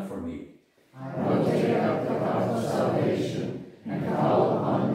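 A congregation of men and women reads aloud together.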